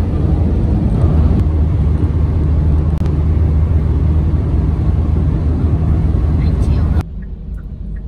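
A vehicle's engine and tyres rumble steadily on a highway.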